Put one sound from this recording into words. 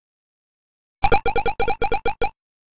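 Video game beeping tones sound in quick bursts.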